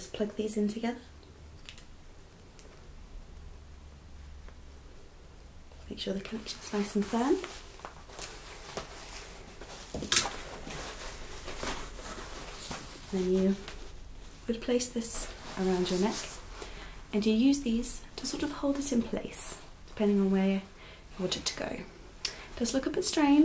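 A young woman talks animatedly and close by.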